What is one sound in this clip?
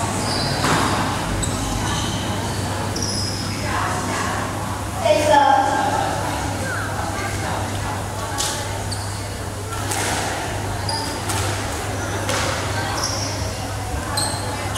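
A squash ball thuds sharply off the walls of an echoing court.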